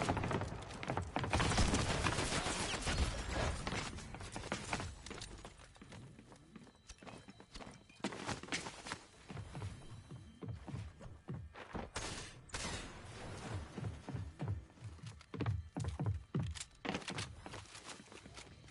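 Wooden building pieces clatter into place in quick bursts.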